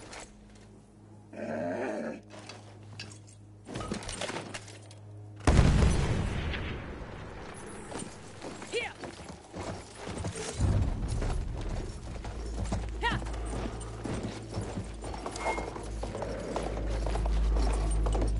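A horse gallops with heavy hoofbeats over rough ground.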